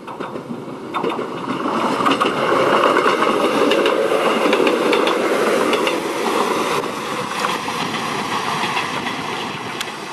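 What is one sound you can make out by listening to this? Train wheels clack rhythmically over the rail joints.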